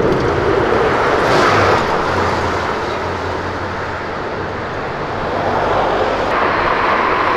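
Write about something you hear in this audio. A large old car engine rumbles as the car drives past.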